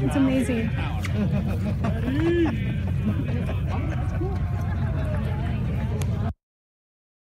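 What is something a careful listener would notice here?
A crowd chatters and cheers outdoors in wind.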